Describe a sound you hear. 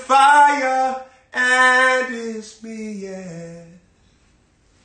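A young man sings loudly and with feeling, close by.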